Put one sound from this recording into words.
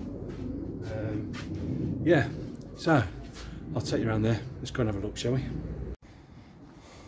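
A man talks casually, close by.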